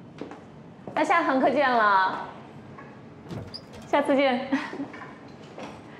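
A woman calls out a cheerful goodbye in a sing-song voice.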